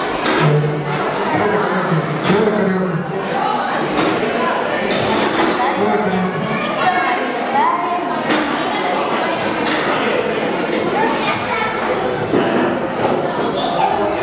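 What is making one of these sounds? A man speaks with animation into a microphone, heard over loudspeakers in an echoing hall.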